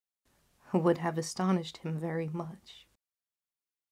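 A young woman speaks softly and clearly close to a microphone.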